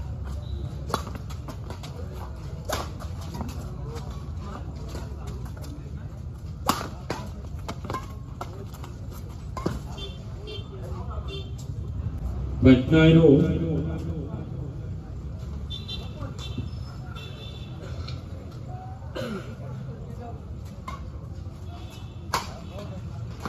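Rackets strike a shuttlecock with sharp pops.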